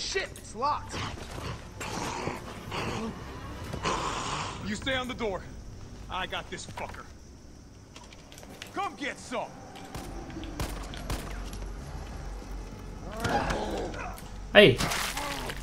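A zombie growls and groans.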